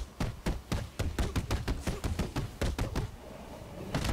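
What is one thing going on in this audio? Rapid punches land in quick succession.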